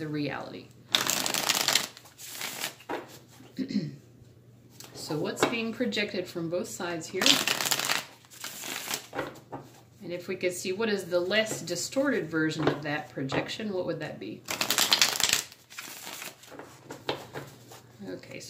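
Playing cards riffle and shuffle in quick bursts close by.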